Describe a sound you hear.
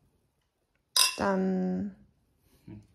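Two wine glasses clink together and ring.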